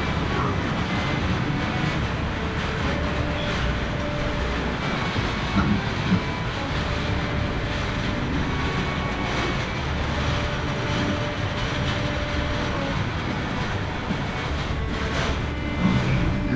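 Pigs grunt and snuffle nearby.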